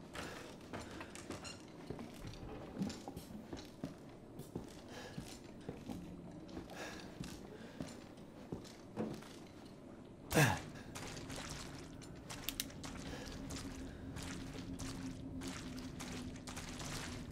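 Footsteps creak and thud on wooden boards.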